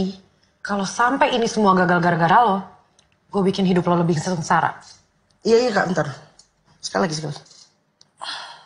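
A woman speaks tensely up close.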